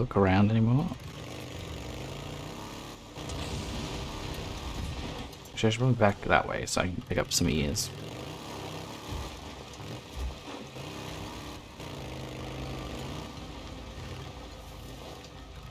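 A motorcycle engine runs and revs as the bike rides along.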